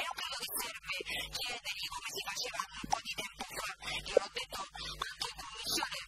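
An adult woman speaks with animation through a microphone.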